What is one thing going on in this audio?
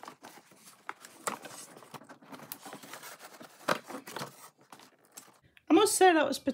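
Cardboard rustles and knocks as it is handled.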